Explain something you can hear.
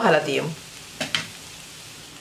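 A glass lid clinks onto a pan.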